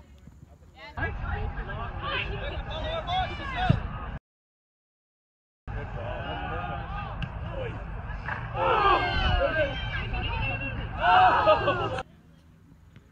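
Players shout to one another across an open field.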